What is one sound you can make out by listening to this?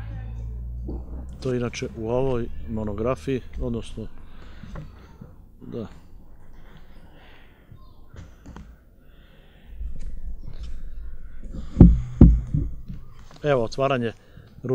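An elderly man speaks calmly into a microphone close by.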